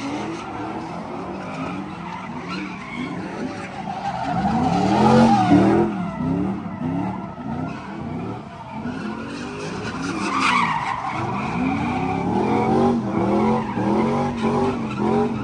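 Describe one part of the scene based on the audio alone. Tyres screech on asphalt.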